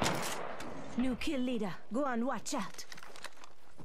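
A young man talks with animation through a microphone.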